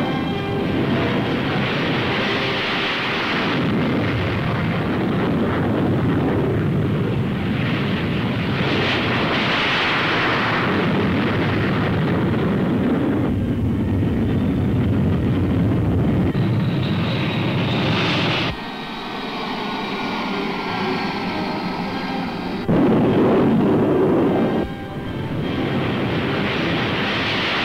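Jet engines roar loudly as jets take off and climb overhead.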